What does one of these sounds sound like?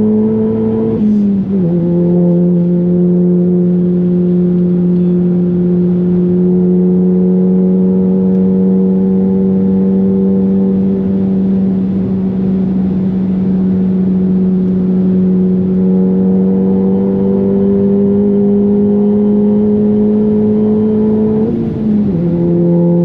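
A car engine drops in pitch as the gears shift up.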